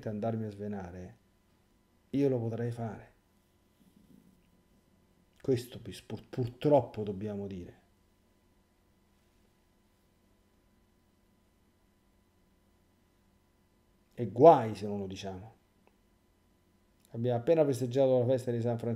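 A middle-aged man speaks calmly and thoughtfully into a nearby microphone, with long pauses.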